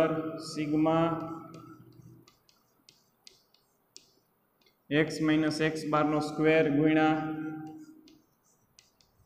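A young man speaks calmly in an echoing room.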